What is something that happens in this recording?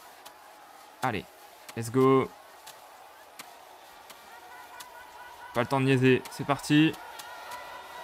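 A young man speaks in short bursts, close to a microphone.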